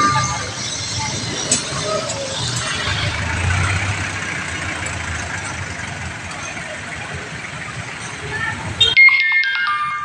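A jeepney engine rumbles nearby.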